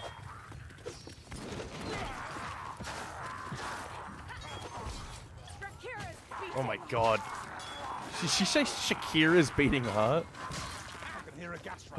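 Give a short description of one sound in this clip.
A heavy hammer thuds into enemies.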